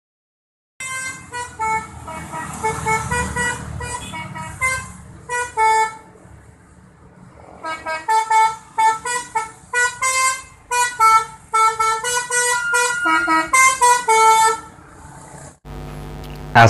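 A bus horn plays a loud, rapid musical tune.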